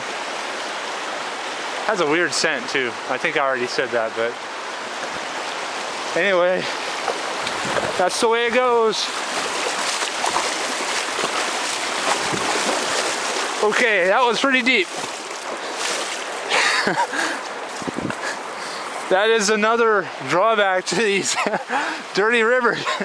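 A muddy creek rushes and roars steadily.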